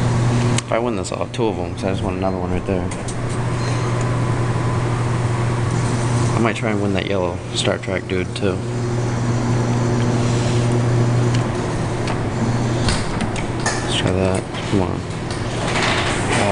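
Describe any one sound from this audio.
An arcade machine hums steadily.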